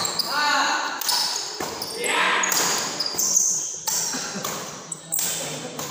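Shoes squeak on a hard court floor in a large echoing hall.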